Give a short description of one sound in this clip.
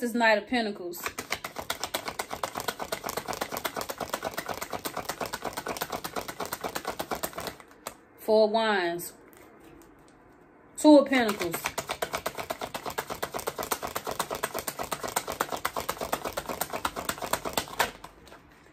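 Playing cards riffle and flutter rapidly as they are shuffled.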